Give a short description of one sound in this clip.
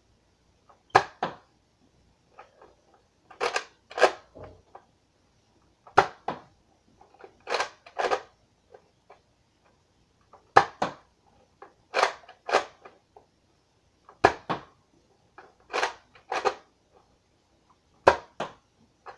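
A toy dart blaster fires with a sharp snap, again and again.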